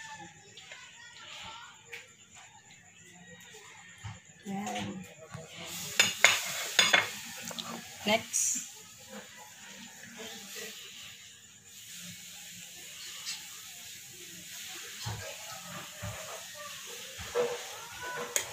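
A metal serving spoon scrapes against a ceramic baking dish.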